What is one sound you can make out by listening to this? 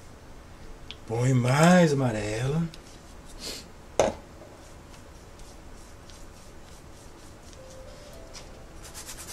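A stiff brush dabs and scrubs paint onto a surface.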